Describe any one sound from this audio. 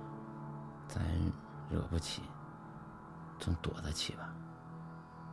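A man speaks in a choked, tearful voice close by.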